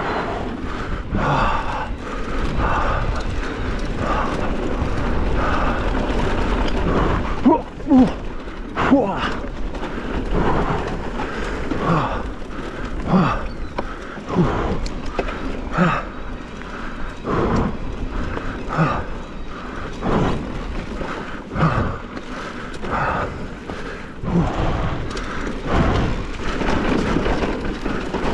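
A bicycle frame and chain clatter over bumps.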